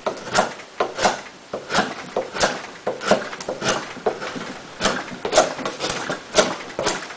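A knife blade chops and shaves wood in quick repeated strokes.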